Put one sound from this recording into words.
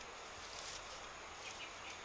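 Leaves rustle as a plant is pulled.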